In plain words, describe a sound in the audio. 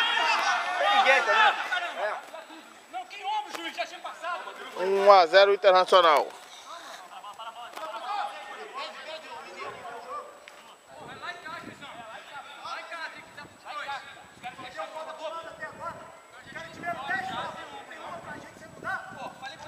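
Men call out to one another in the open air.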